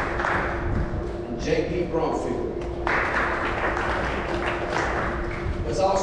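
A man announces through a microphone and loudspeaker.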